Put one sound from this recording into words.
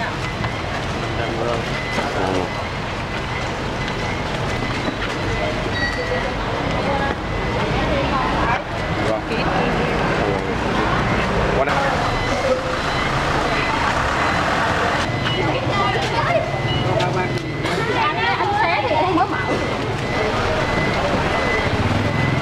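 A crowd of people talks outdoors in the street.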